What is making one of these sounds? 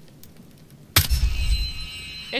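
A pistol fires once with a loud, booming bang.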